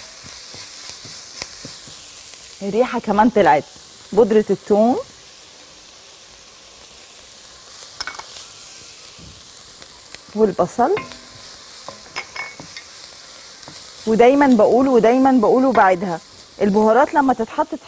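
A wooden spoon scrapes and stirs food in a pot.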